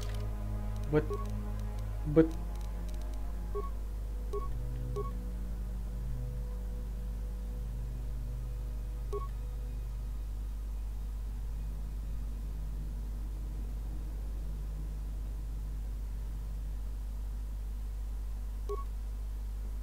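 Short electronic beeps sound as menu items are selected.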